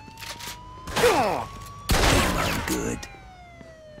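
A shotgun fires loudly, twice.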